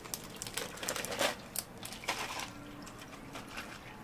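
Water pours and splashes over ice.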